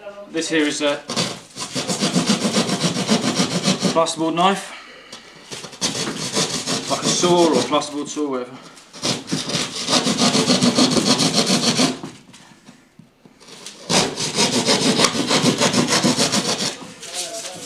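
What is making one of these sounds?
A hand saw rasps back and forth through drywall.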